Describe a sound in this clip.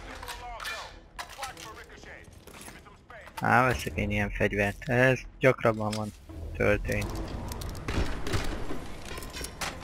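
A gun's metal parts click and clatter.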